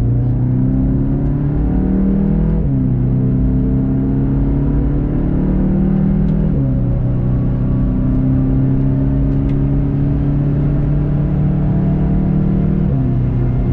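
A car engine roars loudly as it accelerates hard.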